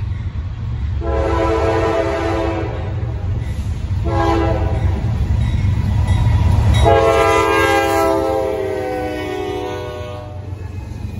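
A train horn blares in long, loud blasts.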